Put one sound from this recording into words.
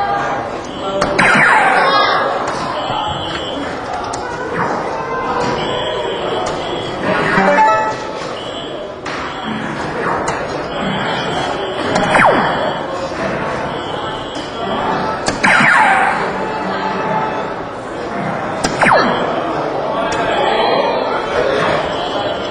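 Darts hit an electronic dartboard with sharp taps.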